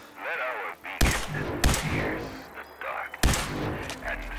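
A laser gun fires a few sharp zaps.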